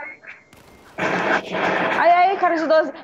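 An assault rifle fires a burst.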